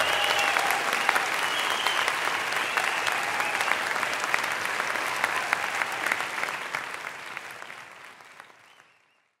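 A large crowd applauds and cheers in a big echoing hall, slowly fading away.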